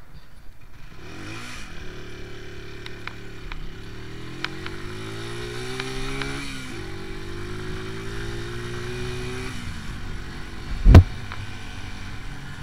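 Wind rushes past as the motorcycle rides along.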